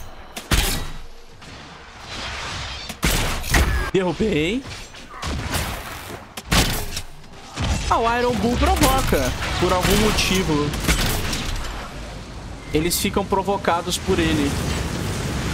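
Magic blasts crack and boom in sharp bursts.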